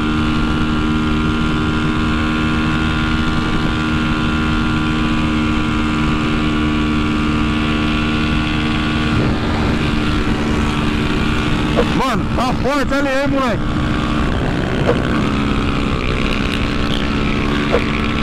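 A motorcycle engine drones steadily at high speed.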